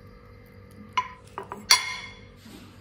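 A fork clinks against a glass dish.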